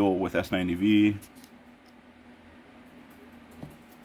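A folding knife blade snaps open with a click.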